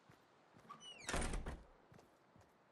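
A wooden door shuts with a thud.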